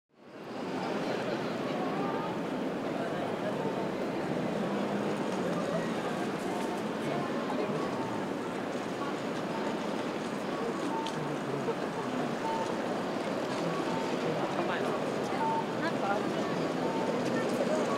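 Footsteps of many people patter on pavement.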